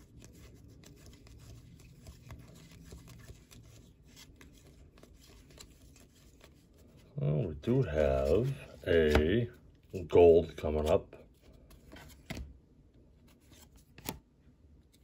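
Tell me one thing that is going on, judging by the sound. Paper cards rustle and flick as they are shuffled by hand.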